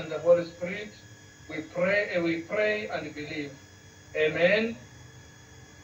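A television broadcast plays through a small loudspeaker.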